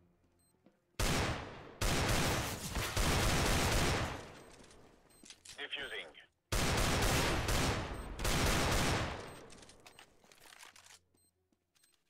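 A heavy pistol fires loud shots that ring out with a long echo.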